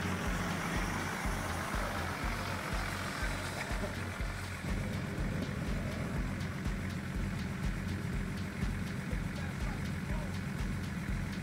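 An off-road vehicle's engine rumbles and labours as it climbs a steep dirt track.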